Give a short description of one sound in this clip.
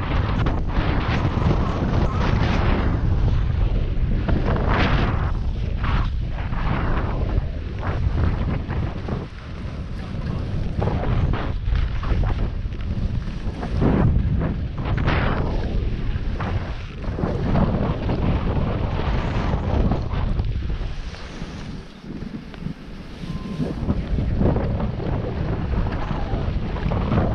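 Skis scrape and hiss over packed snow in sweeping turns.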